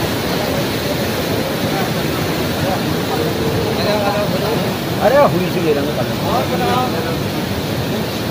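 An elderly man speaks calmly close to the microphone.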